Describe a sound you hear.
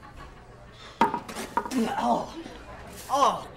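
A man splutters and groans close by.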